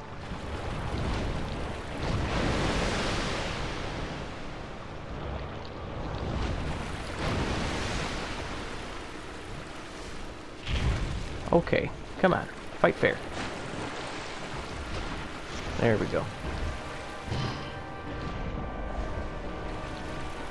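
Water splashes and sloshes in rushing waves.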